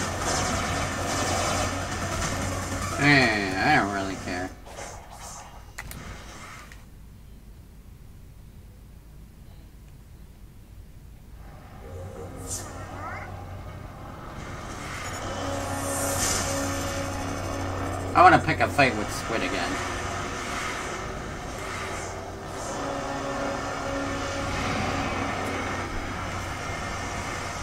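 Electronic game sounds whoosh and hum.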